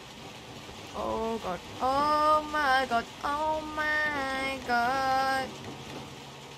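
A young woman sings a melody close to a microphone.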